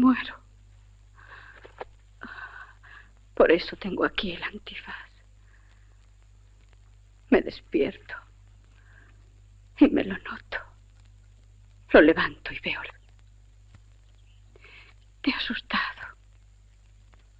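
A woman speaks calmly and softly nearby, in short phrases.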